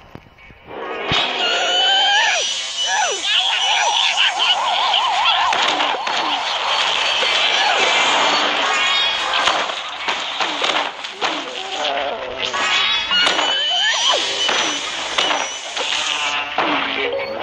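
Game sound effects pop and splat rapidly.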